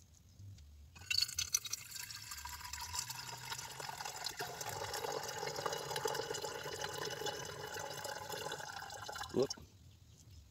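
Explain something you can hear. Liquid pours steadily from a glass beaker into a flask.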